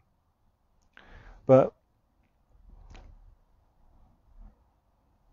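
A man speaks calmly and softly close by, in short bursts with pauses.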